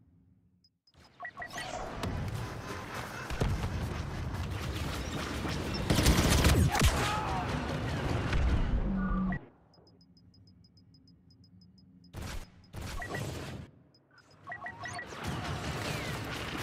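Gunfire and explosions rumble loudly.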